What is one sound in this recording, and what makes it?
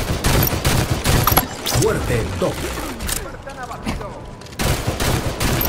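Rapid gunfire bursts from a rifle in a video game.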